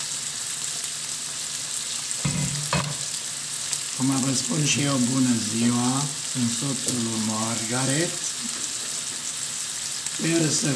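Bacon sizzles and crackles in a hot pan.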